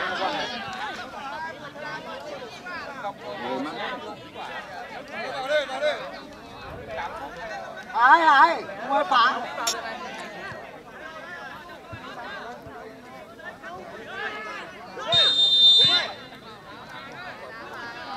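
Several men shout and call out to each other outdoors.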